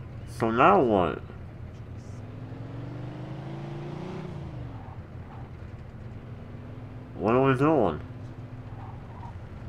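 A car engine hums steadily, its pitch rising and then dropping as it speeds up and slows.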